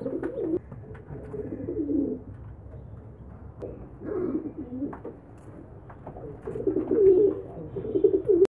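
Pigeon chicks squeak and peep close by.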